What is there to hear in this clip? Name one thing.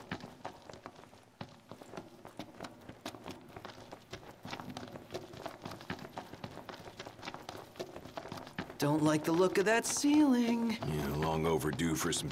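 Footsteps run quickly over stone, echoing in a cave.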